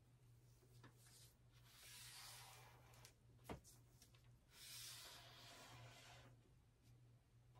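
A felt-tip marker scratches along paper.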